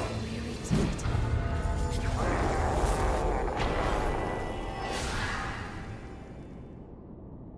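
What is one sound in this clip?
Blades clash and slash in a fierce fight.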